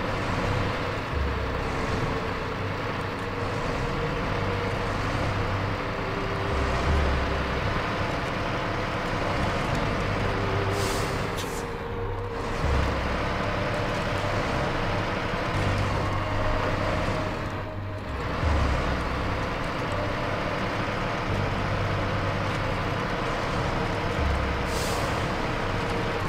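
Tyres crunch over rough rocky ground.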